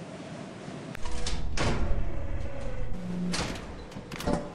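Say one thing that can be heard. A heavy metal door rumbles open.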